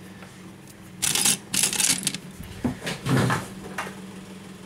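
Fingers tap and scrape on a small device.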